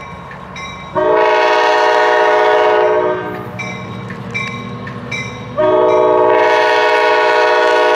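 A train horn blares loudly in two long blasts.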